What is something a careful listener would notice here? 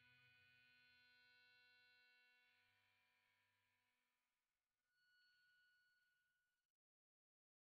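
Bright chime tones ring out and slowly fade.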